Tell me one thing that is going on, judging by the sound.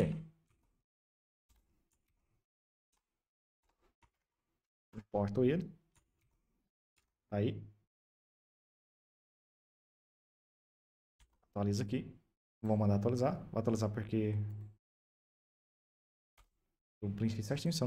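A young man talks calmly and close to a microphone, in short bursts with pauses.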